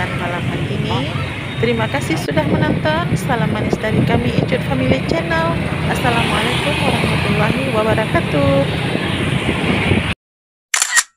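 Motorbike engines rumble in busy traffic.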